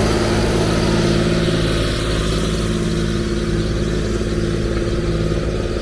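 Disc harrow blades scrape and rumble through the soil.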